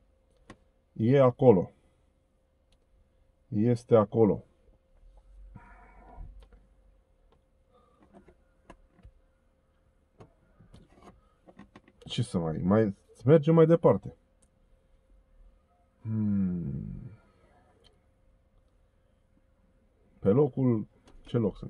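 A middle-aged man speaks close by in short bursts, with pauses between them.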